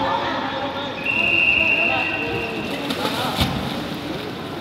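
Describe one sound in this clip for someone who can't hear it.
A life raft flips over and splashes heavily into water.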